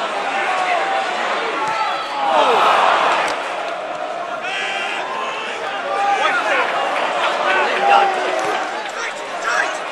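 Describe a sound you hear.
A football crowd shouts and chants in an open stadium.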